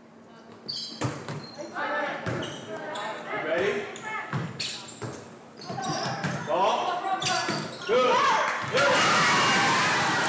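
Young women shout and cheer.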